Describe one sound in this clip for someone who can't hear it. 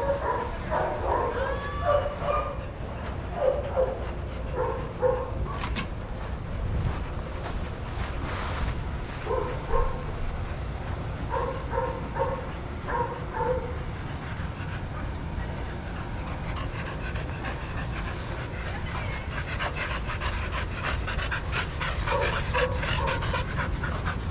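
Dogs bark in short bursts nearby.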